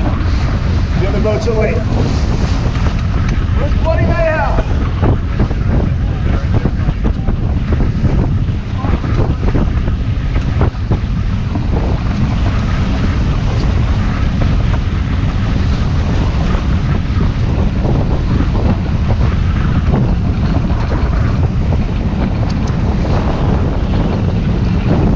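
Strong wind buffets the microphone steadily.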